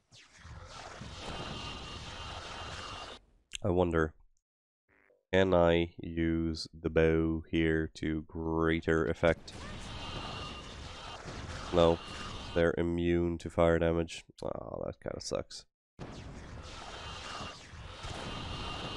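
Energy weapons fire and explode in bursts.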